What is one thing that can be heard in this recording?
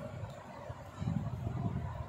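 Cloth rustles softly as a hand lifts it.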